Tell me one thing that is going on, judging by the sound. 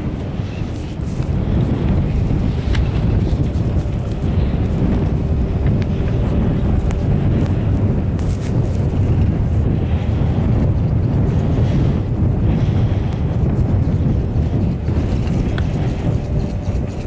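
Wind buffets and rumbles steadily outdoors.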